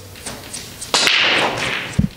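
A cue ball smashes into a rack of pool balls with a loud crack.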